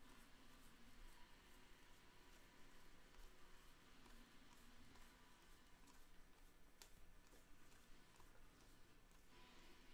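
Trading cards flick and slide against each other as they are shuffled.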